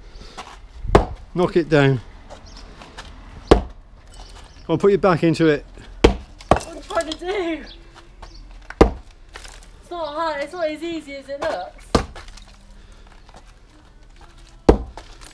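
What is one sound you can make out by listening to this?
A sledgehammer thuds heavily onto a paving slab, again and again.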